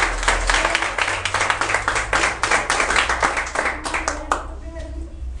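A crowd claps hands rapidly in a room.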